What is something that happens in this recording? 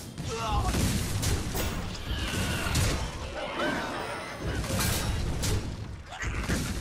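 Magical game sound effects chime and whoosh as cards attack.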